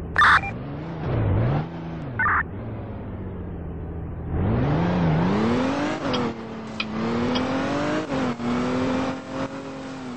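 A video game car engine revs up and down.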